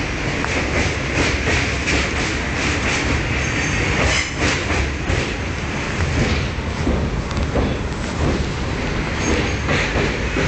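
A train rumbles steadily along the tracks, its wheels clattering in a quick rhythm.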